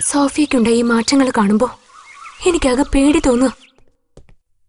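Women talk with animation at close range.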